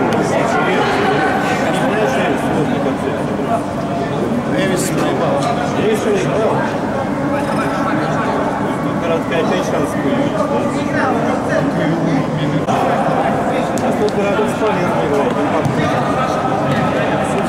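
Several men argue loudly and talk over each other in an echoing hall.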